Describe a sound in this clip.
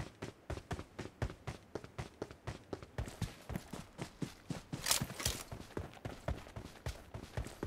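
Footsteps thud quickly and steadily as a game character runs.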